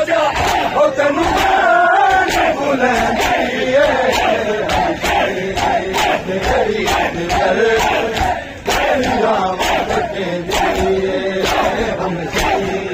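Men beat their chests in a steady, fast rhythm.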